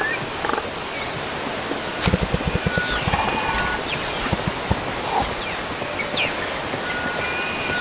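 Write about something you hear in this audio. Small monkeys chatter and squeak.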